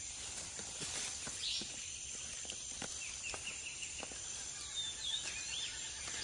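Branches creak and leaves rustle as a monkey climbs through a tree.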